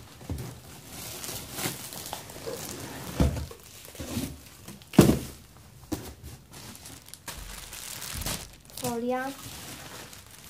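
Cardboard scrapes and thumps.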